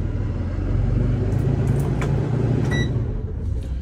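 Keys jingle and click against each other.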